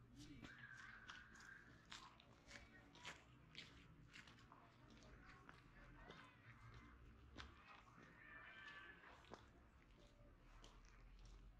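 Footsteps crunch steadily on a dirt and gravel path.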